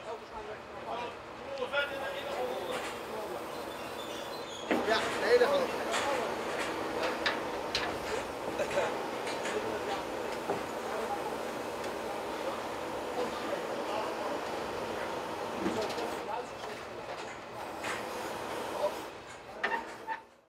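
A fairground ride's machinery hums and whirs as it moves.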